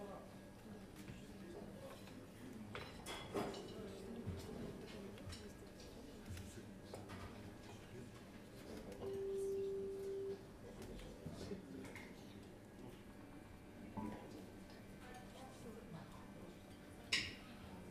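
A small band plays soft jazz quietly.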